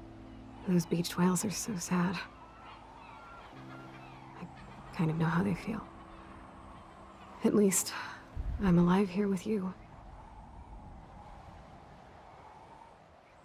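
Gentle waves wash softly onto a shore.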